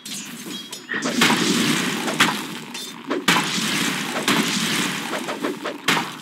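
A roaring magical blast whooshes loudly.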